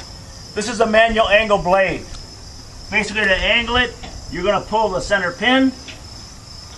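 A man talks calmly nearby, outdoors.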